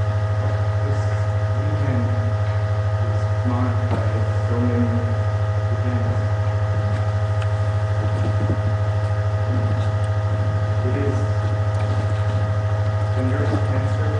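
A man speaks quietly through a microphone.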